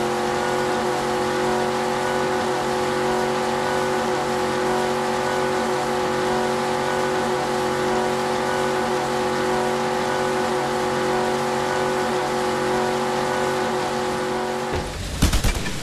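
A motorboat engine drones steadily at high speed, then cuts out.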